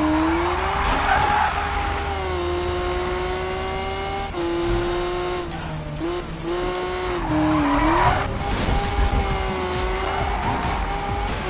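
A car engine roars steadily, its pitch shifting as it revs.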